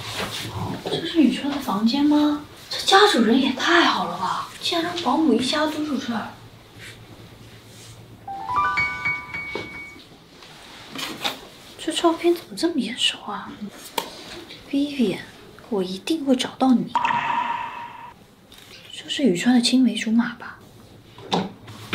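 A young woman speaks softly and wonderingly, close to a microphone.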